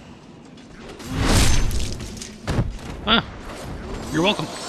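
A sword strikes and clangs against an enemy.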